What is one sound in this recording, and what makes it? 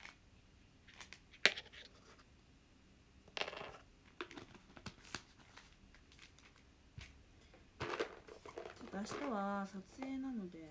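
A plastic jar lid clicks and taps as it is handled close by.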